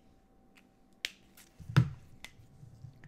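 A marker cap clicks.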